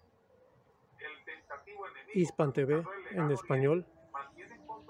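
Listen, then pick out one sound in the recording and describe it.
A man speaks calmly through a television loudspeaker.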